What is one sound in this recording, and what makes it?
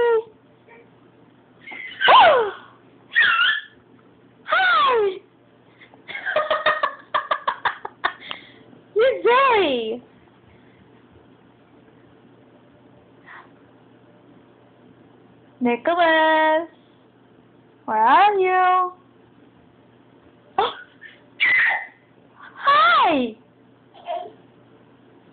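A toddler squeals and babbles excitedly nearby.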